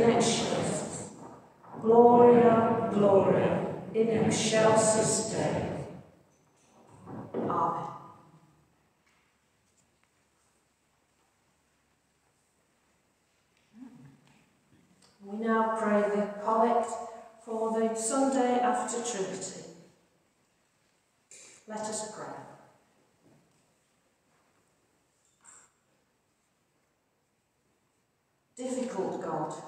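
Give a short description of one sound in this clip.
An elderly woman speaks calmly and slowly, as if reading aloud, with pauses, in a reverberant hall.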